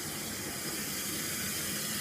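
A girl brushes her teeth with a scrubbing sound.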